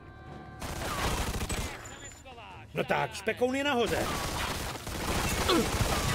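Gunshots ring out and echo.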